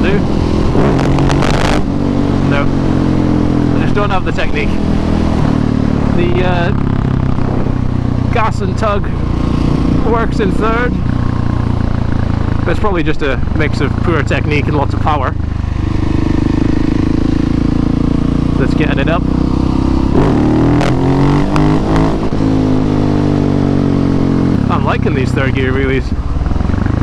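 A motorcycle engine drones close by, its pitch rising and falling as it revs and shifts gears.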